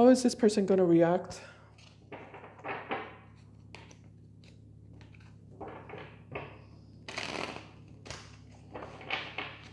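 Playing cards rustle and slap as they are shuffled by hand.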